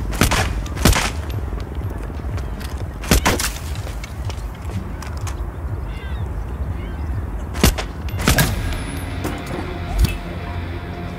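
Pistol shots ring out sharply, one at a time.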